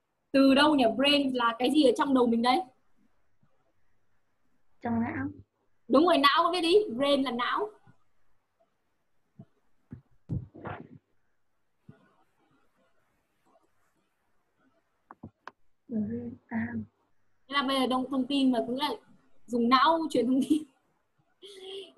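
A young woman speaks clearly through an online call, in short bursts with pauses.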